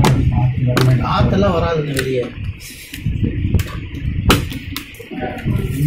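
Plastic knocks and clicks as a laptop is handled and turned over.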